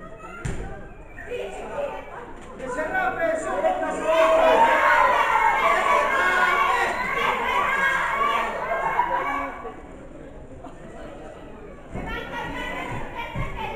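A crowd of spectators shouts and cheers loudly nearby.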